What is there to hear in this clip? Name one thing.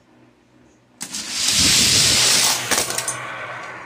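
Small toy cars roll fast down a plastic track with a rushing rattle.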